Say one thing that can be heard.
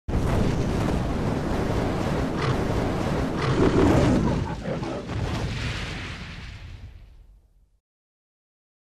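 Fire roars and whooshes loudly, then fades away.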